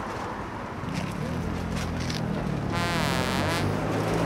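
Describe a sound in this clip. A young man chews food noisily with his mouth full.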